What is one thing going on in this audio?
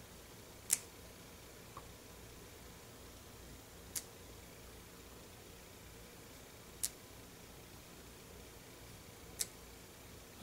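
A stamp taps down onto paper on a table.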